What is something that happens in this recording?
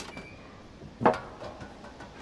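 A soft thud sounds as a small animal lands on a metal pipe.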